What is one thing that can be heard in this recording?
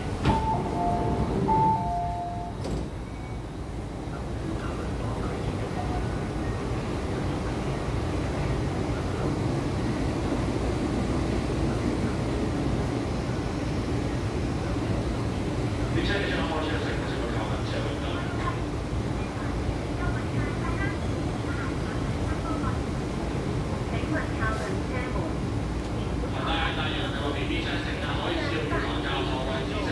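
A low, steady rumble of machinery fills the air.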